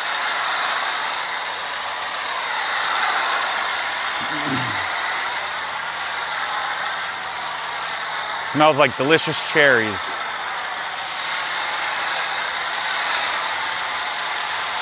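A pressure washer sprays water in a steady hiss.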